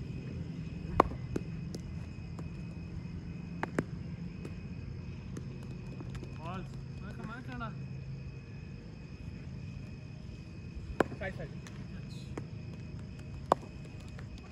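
A cricket bat sharply strikes a ball.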